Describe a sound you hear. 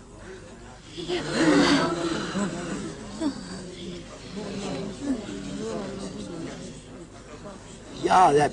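A young man cries out in distress.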